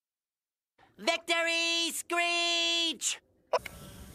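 A cartoon character shouts in a high, strained voice.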